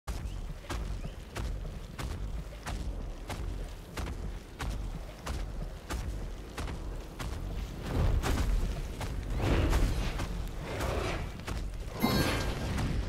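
Footsteps tap steadily and quickly on stone.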